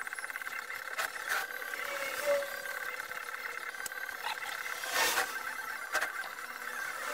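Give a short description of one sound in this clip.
A wooden box bumps and scrapes against a workbench.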